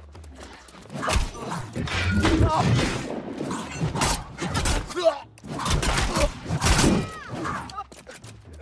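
Magic blasts burst and crackle.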